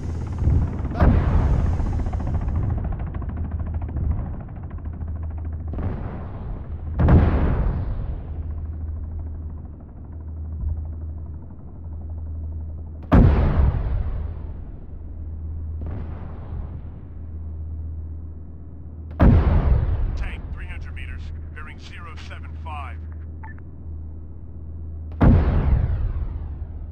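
A tank cannon fires loud booming shots at a steady pace, each echoing away.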